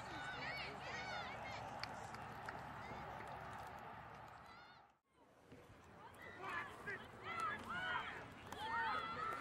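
A crowd of spectators cheers and murmurs at a distance outdoors.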